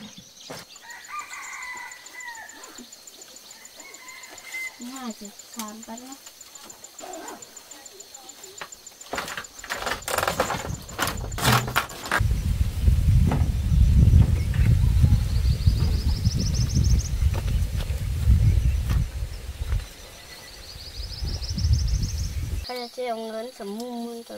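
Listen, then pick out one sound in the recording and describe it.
A young boy talks calmly close by.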